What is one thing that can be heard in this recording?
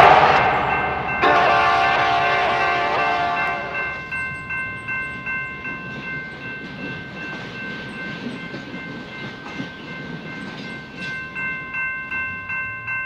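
A crossing bell rings steadily.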